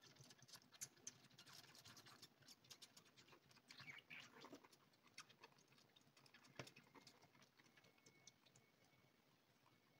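A kitten suckles noisily from a feeding bottle, with quick wet clicks.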